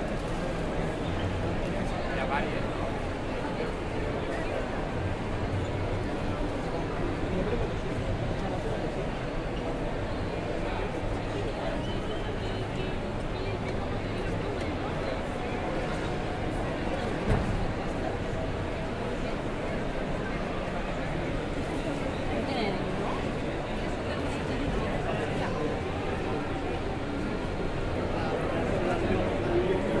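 A crowd of people chatters all around indoors.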